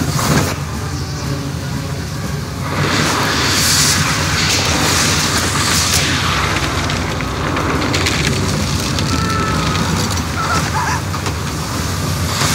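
Heavy waves crash and surge loudly.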